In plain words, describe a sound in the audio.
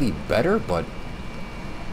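A man speaks briefly and with animation into a microphone.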